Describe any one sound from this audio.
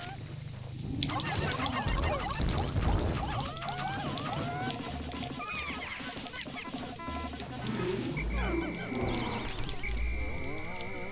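A large creature thuds and booms as it is attacked.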